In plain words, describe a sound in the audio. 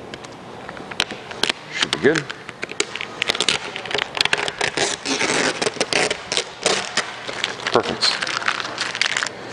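Plastic wrap film crinkles and crackles as it is handled.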